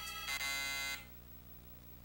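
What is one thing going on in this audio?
A video game plays a short, bright electronic jingle.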